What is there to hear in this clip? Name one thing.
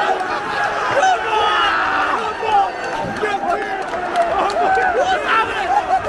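A man shouts with excitement close by.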